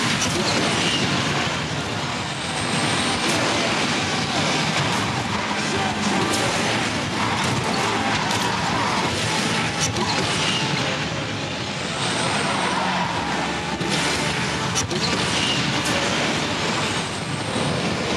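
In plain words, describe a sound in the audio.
A muscle car engine roars at high speed.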